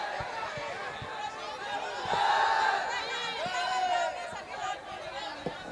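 A crowd of women and girls chatter loudly all around, close by.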